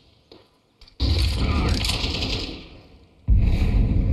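A thrown firebomb bursts and roars into flames.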